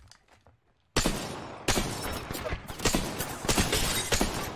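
An automatic rifle fires in rapid bursts.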